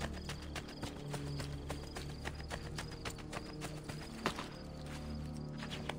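Quick footsteps patter over grass and stone.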